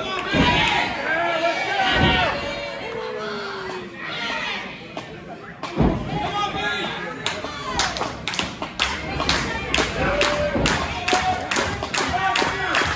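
A crowd of men and women shouts and cheers indoors.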